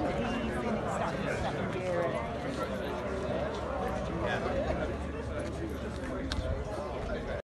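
A crowd of men and women chat nearby outdoors.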